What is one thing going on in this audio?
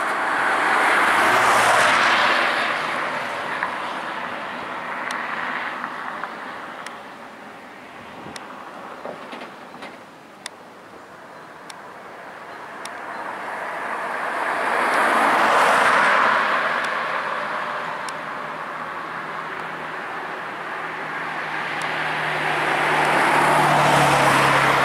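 A helicopter's rotor thumps and whirs overhead, growing louder and fading in waves.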